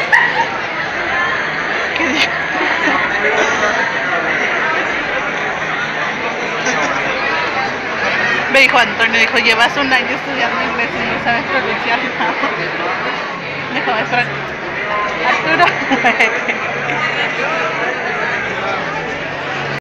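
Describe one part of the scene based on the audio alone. A crowd of young people chatters nearby in a busy room.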